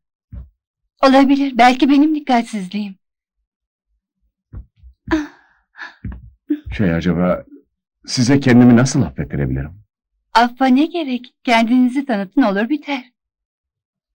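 A young woman speaks softly and pleadingly, close by.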